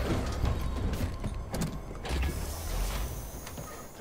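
A crate thumps down into a vehicle's cargo bed.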